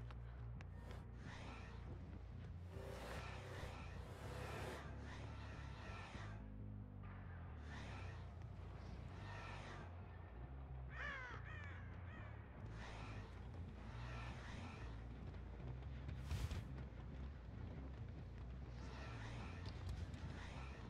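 Heavy footsteps tread steadily on a hard floor.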